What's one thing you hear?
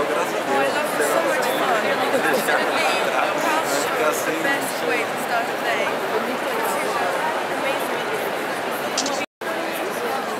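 A young woman speaks into a microphone close by.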